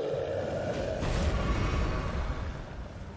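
A loud blast booms and rumbles.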